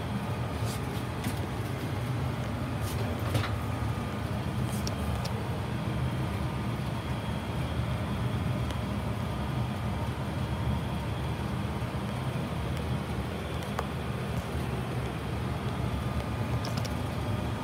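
A furnace hums with a steady low rumble.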